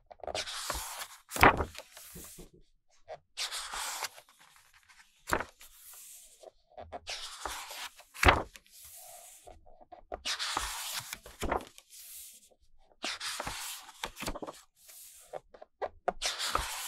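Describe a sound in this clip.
Glossy paper pages rustle and swish as they are turned.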